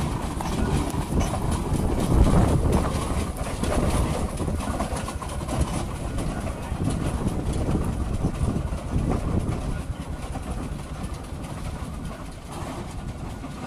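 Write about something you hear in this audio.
A steam traction engine chugs and rumbles close by.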